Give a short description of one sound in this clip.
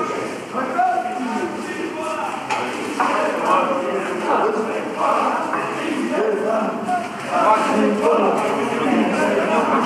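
Several men talk over one another in an echoing room.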